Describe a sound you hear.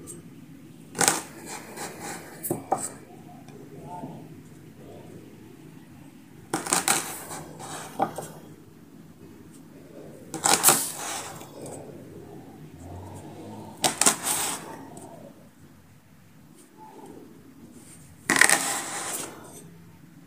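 A plastic cup presses and taps down on dough on a wooden board.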